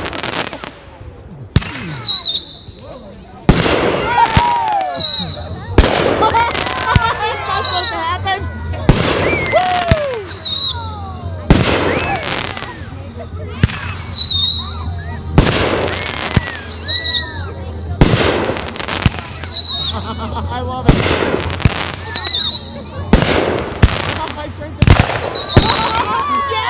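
Fireworks burst with loud, sharp bangs that echo away.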